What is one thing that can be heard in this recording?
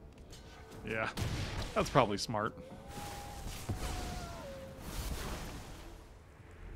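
A middle-aged man speaks into a close microphone.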